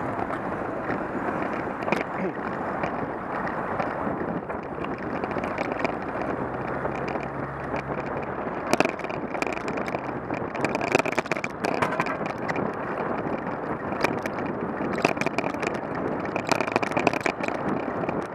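Wind buffets a microphone steadily.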